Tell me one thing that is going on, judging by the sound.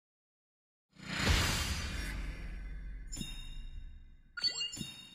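A deep booming whoosh swells up and fades.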